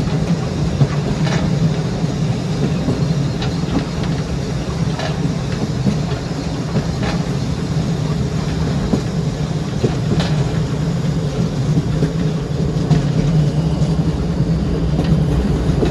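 Wheels clack on rail joints at a steady pace.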